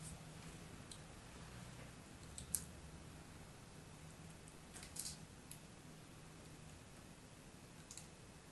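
A blade scrapes and crunches through a crumbly block.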